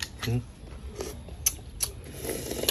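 A young man slurps and chews food.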